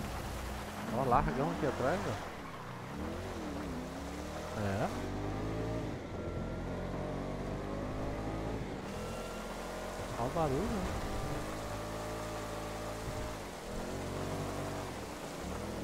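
A car engine revs and roars as the car speeds away.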